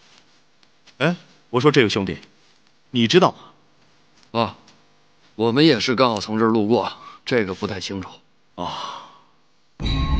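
A man speaks casually while smoking, close by.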